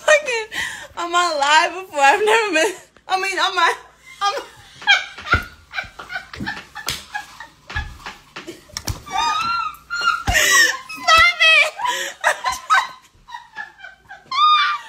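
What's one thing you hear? A young woman laughs loudly close to a phone microphone.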